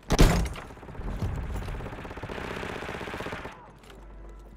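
A machine gun fires a rapid burst nearby.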